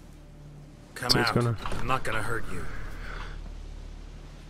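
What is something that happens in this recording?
A man calls out in a deep, gruff voice.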